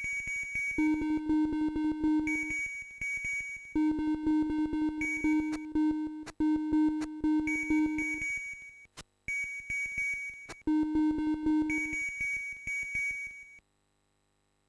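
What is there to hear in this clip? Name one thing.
Bright electronic game music plays with a quick, bouncy beat, then stops abruptly.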